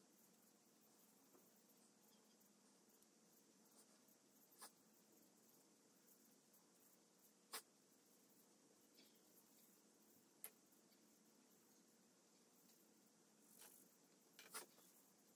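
Wet clay is softly rubbed and pressed by hand.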